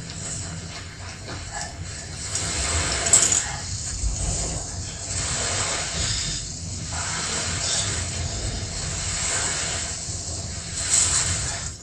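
A heavy load scrapes as it is dragged over sand.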